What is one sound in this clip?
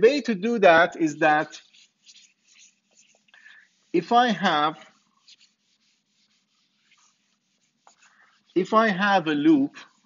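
An eraser wipes across a whiteboard.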